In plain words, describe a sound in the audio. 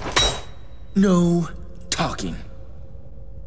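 A young man speaks coolly.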